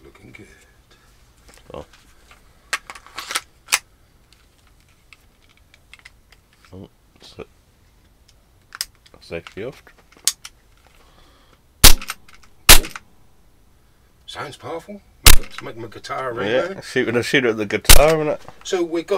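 Metal parts of a pistol click and snap as they are handled.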